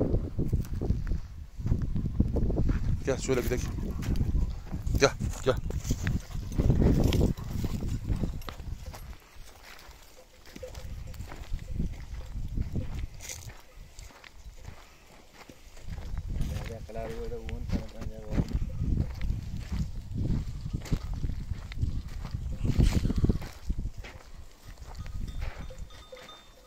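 Footsteps crunch on dry stalks.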